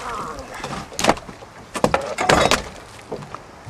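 A large fish thumps and flops on a deck.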